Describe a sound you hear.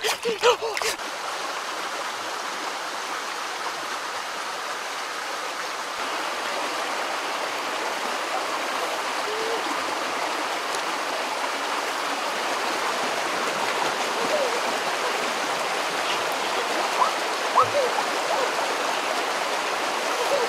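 A stream rushes steadily nearby.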